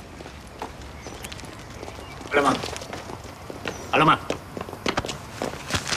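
Footsteps tap along a street outdoors.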